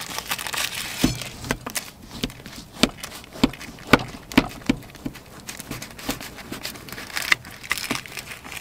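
A knife crunches through flaky bread.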